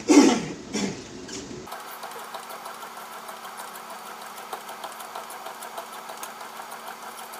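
Footsteps thud softly and evenly on a treadmill belt.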